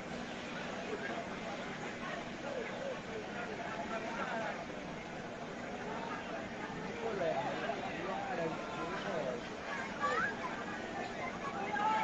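A fire truck engine hums steadily.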